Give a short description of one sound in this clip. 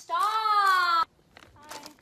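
A bag of chips crinkles loudly.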